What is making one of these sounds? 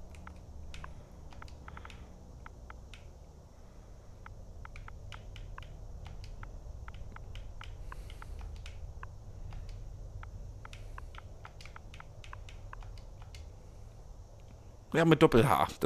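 Soft, quick clicks tick again and again as keys are pressed.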